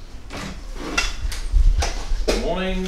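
A door opens with a click.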